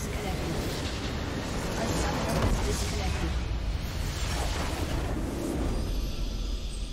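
A game structure explodes with a loud rumbling blast.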